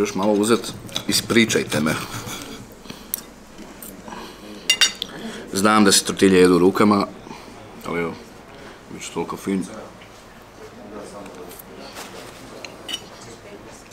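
A knife and fork scrape and clink on a plate.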